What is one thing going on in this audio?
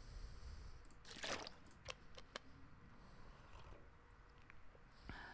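Water is gulped down in swallows.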